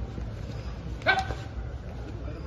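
A young man lets out a sudden loud shout.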